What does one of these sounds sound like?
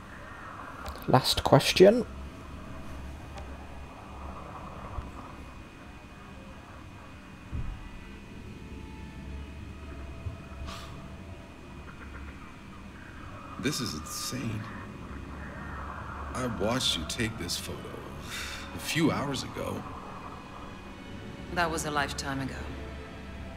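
A man speaks in a low, calm voice nearby.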